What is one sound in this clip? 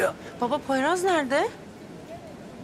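A young woman asks a question in an upset voice, close by.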